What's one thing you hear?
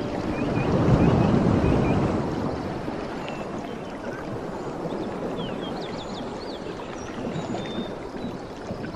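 Water splashes steadily down a small waterfall.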